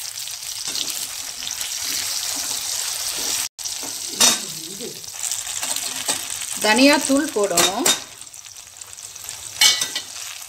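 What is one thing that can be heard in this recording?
A metal spoon scrapes and clinks against a pan.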